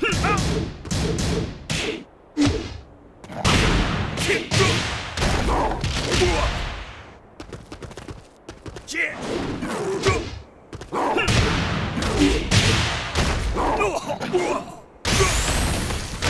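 Heavy punches and kicks land with sharp thuds and smacks.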